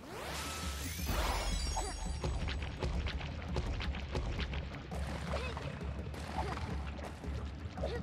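Short game sound effects blip and chime as a character jumps.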